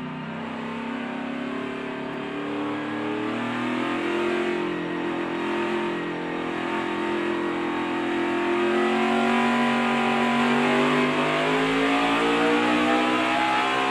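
Several other race car engines whine nearby in a pack.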